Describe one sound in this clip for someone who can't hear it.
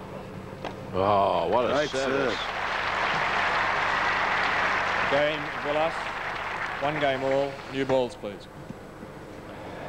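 A large crowd applauds and cheers outdoors.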